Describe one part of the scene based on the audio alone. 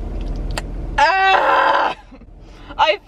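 A young woman groans loudly in disgust.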